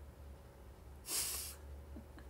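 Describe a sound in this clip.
A young woman laughs briefly close by.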